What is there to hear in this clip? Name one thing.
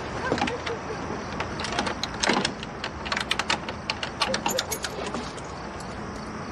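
Keys jingle and click in a door lock.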